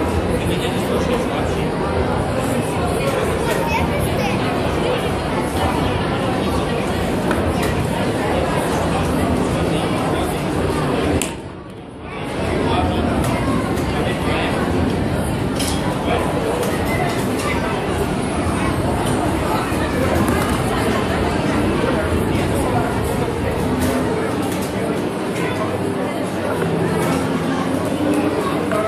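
A plastic stool scrapes and bumps on a hard floor.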